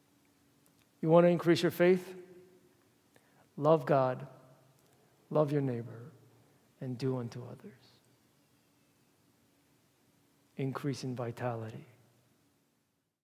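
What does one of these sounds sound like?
A young man speaks calmly in short phrases, with a slight echo of a large room.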